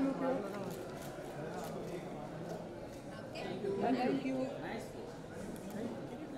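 Several adults chatter and call out nearby.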